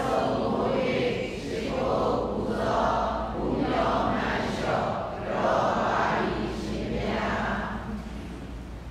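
A man chants steadily through a microphone.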